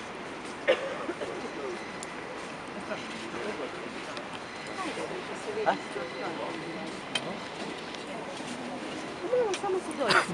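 Footsteps shuffle on concrete steps.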